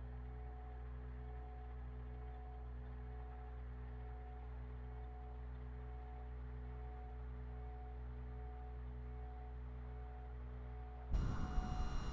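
An aircraft engine drones steadily at idle.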